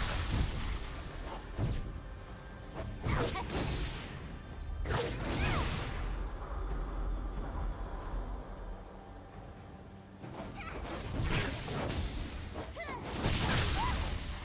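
Game spell effects whoosh and crackle in bursts during a fight.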